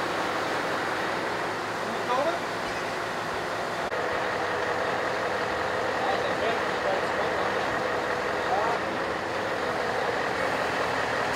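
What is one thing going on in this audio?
A truck engine runs steadily nearby.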